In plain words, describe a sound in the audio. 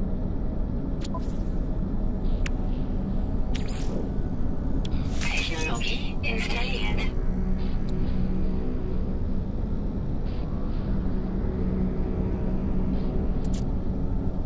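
Short menu clicks and chimes sound as selections change.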